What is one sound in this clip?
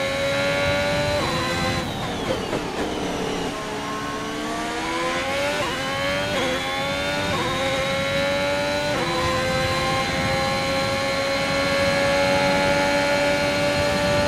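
A racing car engine screams at high revs, dropping in pitch under braking and climbing again.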